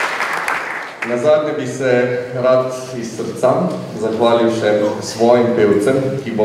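A large choir sings together in a large echoing hall.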